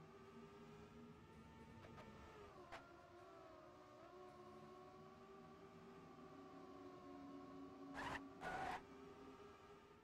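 A racing car engine hums steadily, its pitch dipping and rising with speed.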